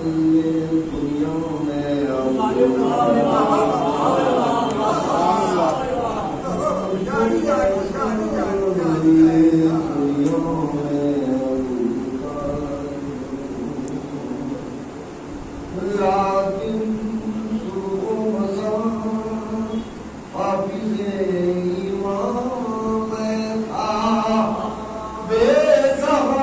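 A middle-aged man chants a mournful recitation into a microphone, heard through loudspeakers in an echoing hall.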